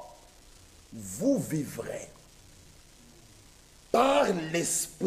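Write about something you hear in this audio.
A man preaches loudly and with fervour through a microphone in an echoing hall.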